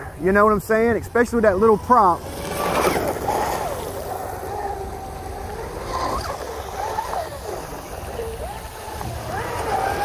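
A fountain splashes steadily.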